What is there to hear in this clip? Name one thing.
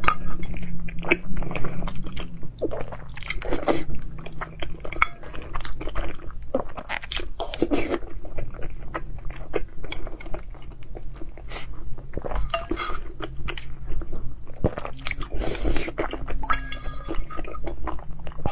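A woman chews and slurps food close to a microphone.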